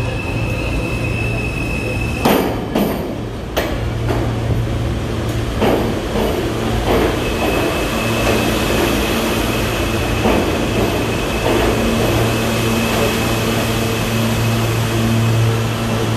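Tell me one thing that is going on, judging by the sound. A subway train rumbles loudly into an echoing station.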